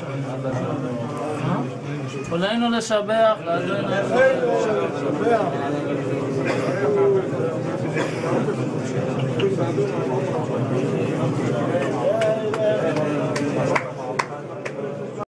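Several men murmur and talk around in an echoing room.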